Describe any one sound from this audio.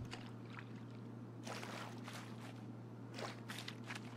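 A mop swishes across a wet floor.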